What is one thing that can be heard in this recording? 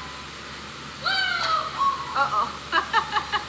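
Small children squeal and laugh in an echoing room.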